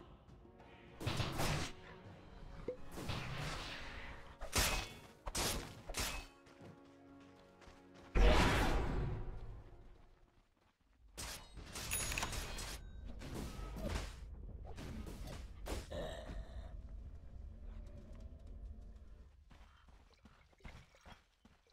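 Magic blasts whoosh and crack in bursts.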